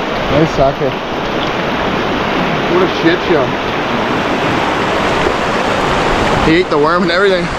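A river rushes loudly nearby.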